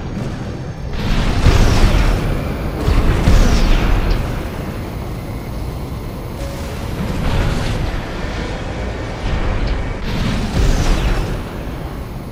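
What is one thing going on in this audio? A mech's thrusters blast in a sudden surge of speed.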